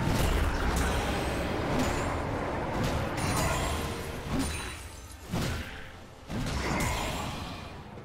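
Magic spells and weapon strikes clash and crackle in a fast, busy fight.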